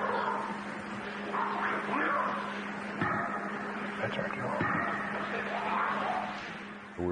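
Men talk quietly nearby.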